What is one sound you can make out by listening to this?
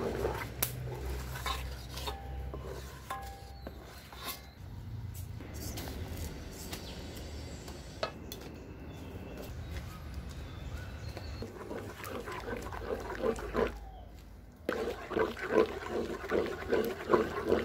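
A wooden paddle scrapes and sloshes through a thick liquid in a metal pot.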